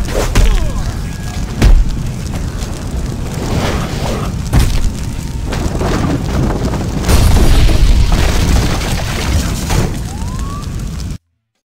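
A fire roars and crackles loudly.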